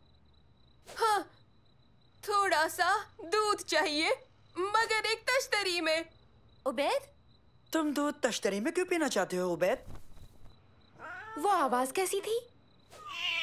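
A man speaks in an animated, playful voice.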